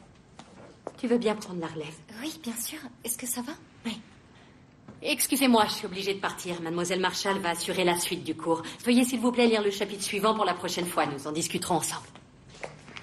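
A woman speaks firmly and close by.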